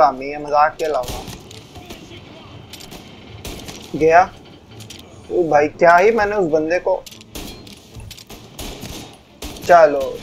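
Pistol shots ring out in bursts.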